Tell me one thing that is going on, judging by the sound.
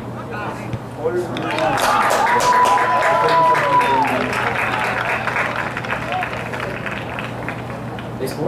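A crowd of spectators cheers and shouts nearby, outdoors.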